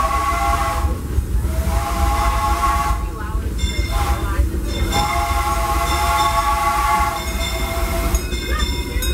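Train wheels squeal on a curve of the track.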